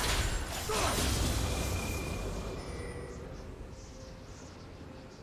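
Game combat sounds of spells and hits burst and fade.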